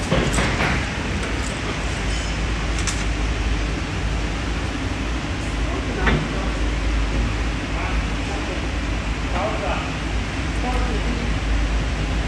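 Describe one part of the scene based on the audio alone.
Plastic and metal parts click and knock as hands fit them together.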